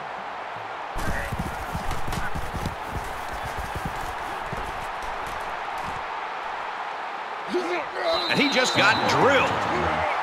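Football players collide with thudding pads.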